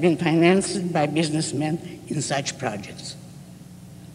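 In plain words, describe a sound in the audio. An elderly woman speaks into a microphone, amplified in a hall.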